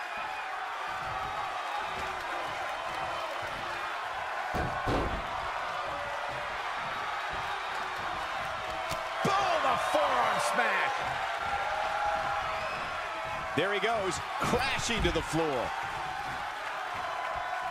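An arena crowd cheers and roars.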